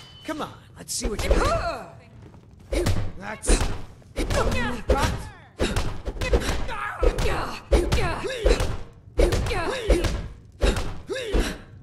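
Fists thud heavily in a brawl.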